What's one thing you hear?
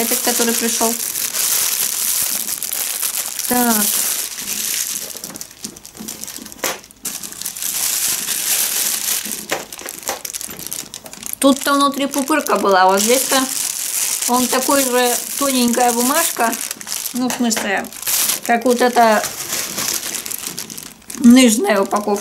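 A plastic mailer bag crinkles and rustles.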